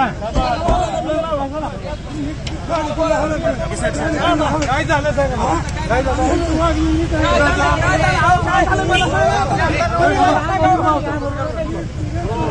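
Several men shout and argue loudly close by, outdoors.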